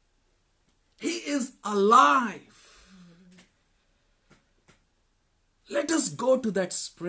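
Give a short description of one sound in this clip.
A man speaks animatedly and loudly, close by.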